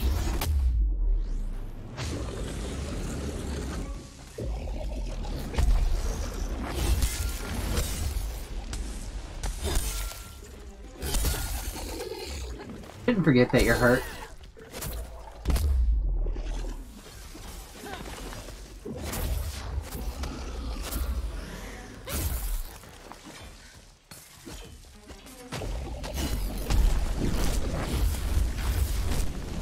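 Weapon blows clang and thud against a huge monster.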